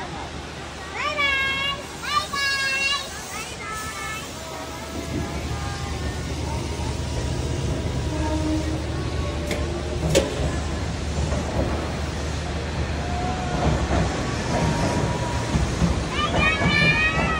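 A child calls out excitedly nearby.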